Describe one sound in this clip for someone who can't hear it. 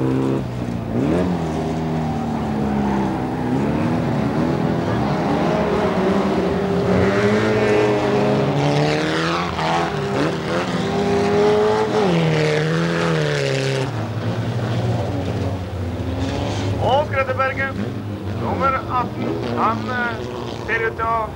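Racing car engines roar and rev loudly.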